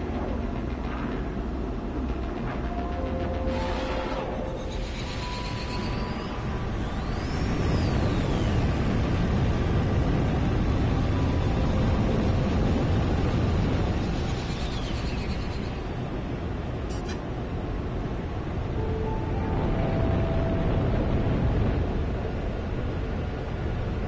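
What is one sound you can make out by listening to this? A spaceship engine roars with a deep, steady rumble that swells and eases.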